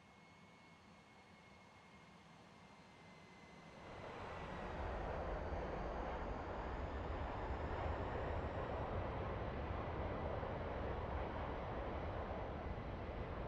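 Jet engines whine steadily.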